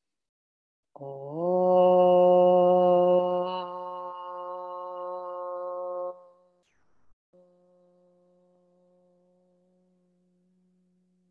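A woman chants a long, steady hum close by, which slowly fades away.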